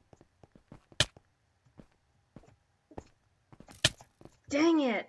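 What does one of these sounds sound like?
Footsteps tap on stone in a game.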